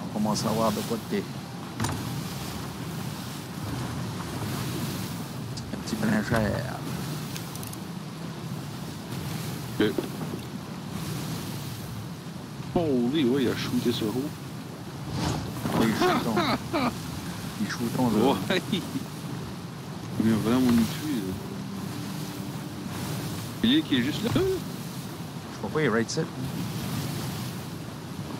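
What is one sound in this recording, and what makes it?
Strong wind howls steadily.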